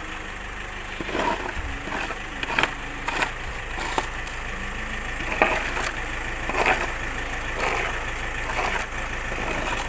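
Small palm fruits thump and rattle as they are scooped from the ground into a plastic basket.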